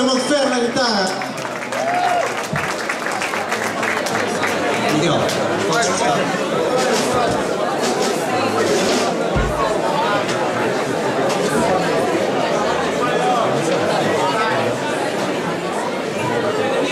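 Electric guitars play loudly.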